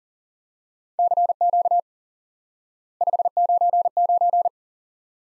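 Morse code beeps in short, quick bursts of a steady tone.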